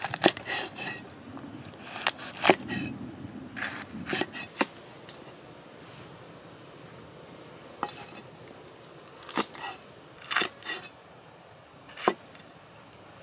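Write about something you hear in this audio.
A cleaver chops through peppers onto a wooden board with sharp knocks.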